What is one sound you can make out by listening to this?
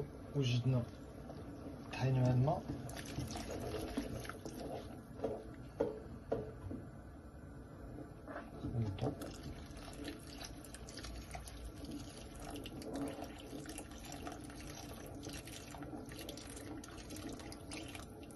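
A thick liquid pours into a pot.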